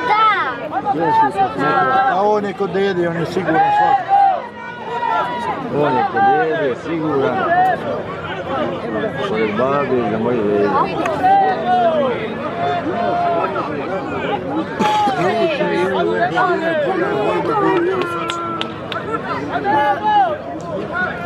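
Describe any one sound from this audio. A large crowd of men and women chatters and calls out loudly outdoors.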